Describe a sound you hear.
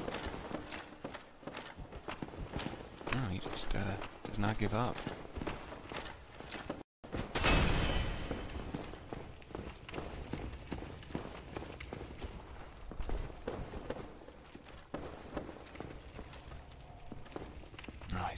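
Armored footsteps clank on stone steps.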